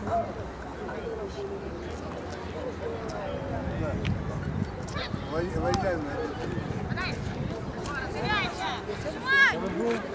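A crowd of spectators talks and cheers outdoors.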